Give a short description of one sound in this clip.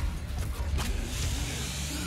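A monster roars.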